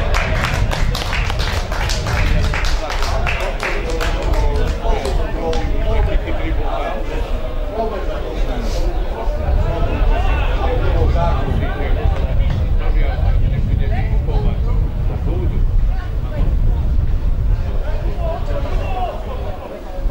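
Football players shout to each other across an open field, heard from a distance.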